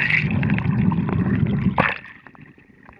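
Muffled underwater rumbling and gurgling is heard up close.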